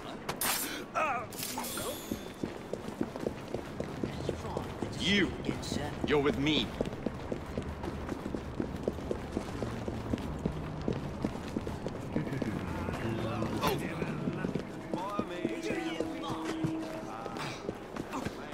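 A man talks casually into a microphone.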